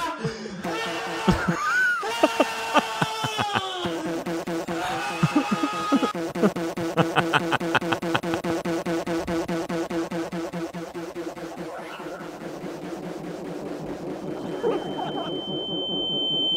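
A young man laughs hard and loudly close to a microphone.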